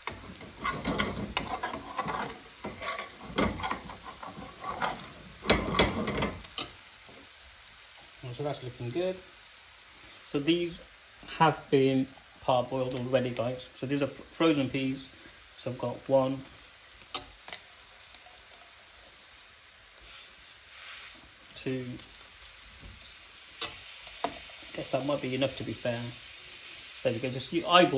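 A sauce sizzles gently in a pan.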